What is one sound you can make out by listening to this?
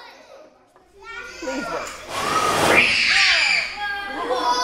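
A group of young children cheer and shout.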